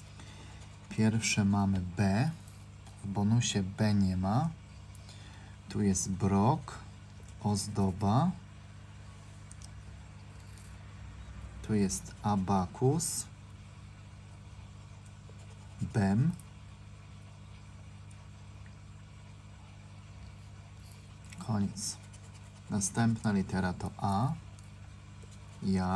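A scratch card is scraped with a small tool.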